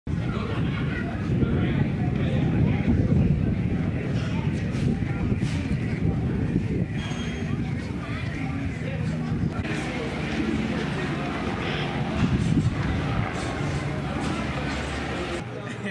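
Wind buffets outdoors throughout.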